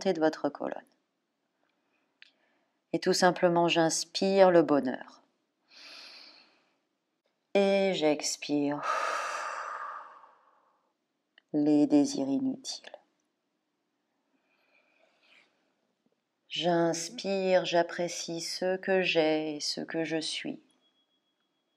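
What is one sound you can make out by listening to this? A young woman speaks calmly and softly, close to a microphone, in short phrases with pauses.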